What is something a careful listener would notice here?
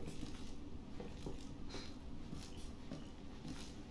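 Footsteps thud on creaking wooden floorboards.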